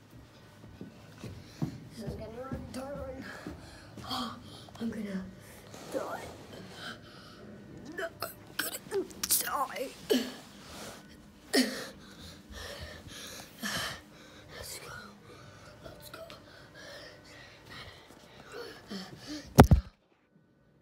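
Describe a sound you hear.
Footsteps thud softly up carpeted stairs.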